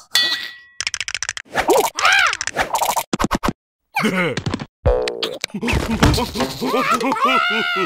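Cartoon creatures chatter and squeal in high, silly voices.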